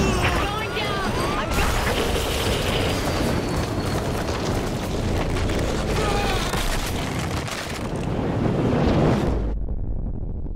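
Wind rushes loudly past during a fall.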